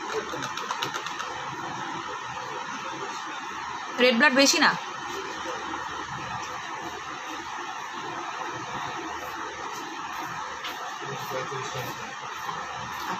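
A young woman speaks softly and close to a microphone.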